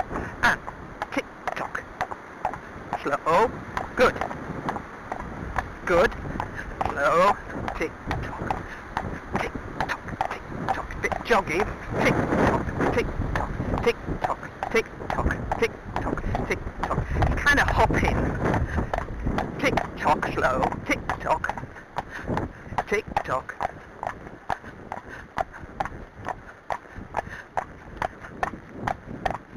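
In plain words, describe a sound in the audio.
A horse's hooves clop steadily on a paved road.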